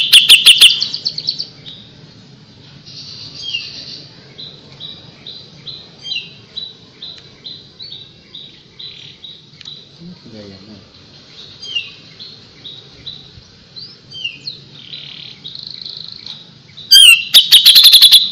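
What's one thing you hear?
Small songbirds chirp and trill in quick, loud bursts.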